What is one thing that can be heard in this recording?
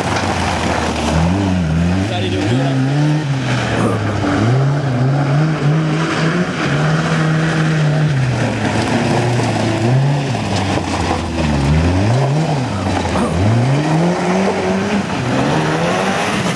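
Tyres skid and spray through wet mud.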